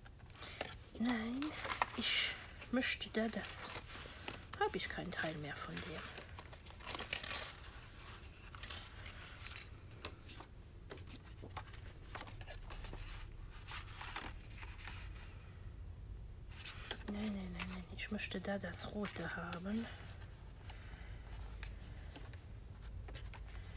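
Paper rustles and slides close by.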